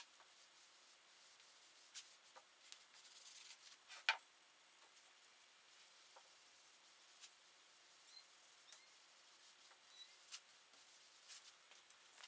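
A rag rubs softly over wood.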